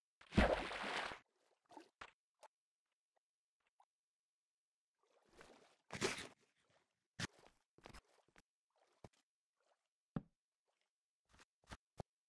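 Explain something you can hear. Footsteps tap on stone at an uneven pace.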